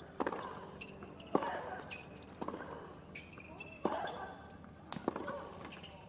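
A tennis ball is struck back and forth with sharp pops of the racket.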